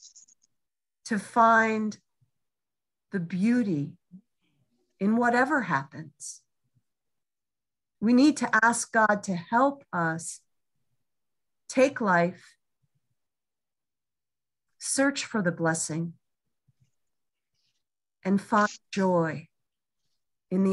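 A middle-aged woman speaks calmly over an online call, in short phrases with pauses.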